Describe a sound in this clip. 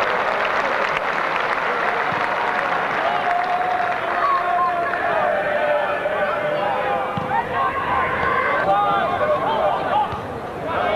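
A football crowd in an open-air stand cheers and shouts.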